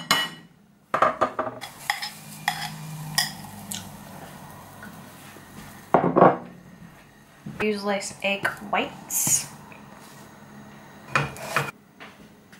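Batter sizzles softly in a frying pan.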